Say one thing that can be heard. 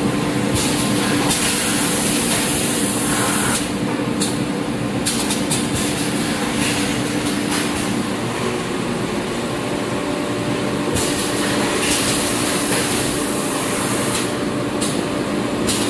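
A conveyor belt rattles and whirs.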